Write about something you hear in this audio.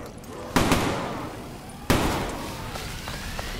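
A gun fires loud shots that echo off stone walls.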